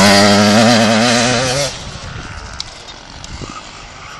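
A motorcycle engine roars loudly close by, then drops away into the distance.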